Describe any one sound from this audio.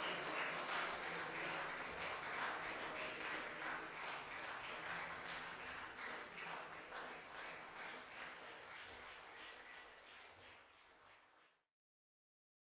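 An audience applauds in a large echoing hall, then the applause fades out.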